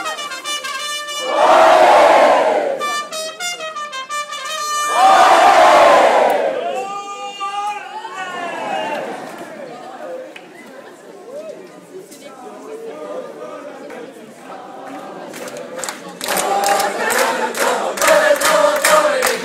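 A large crowd sings and cheers loudly outdoors.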